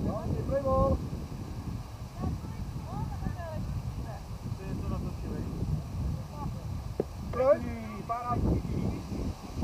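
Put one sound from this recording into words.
Men call out across an open field outdoors.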